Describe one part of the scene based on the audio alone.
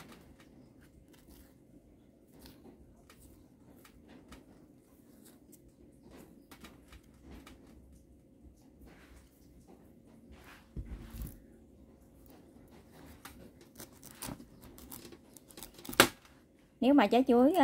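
A knife scrapes and slices through soft banana peel.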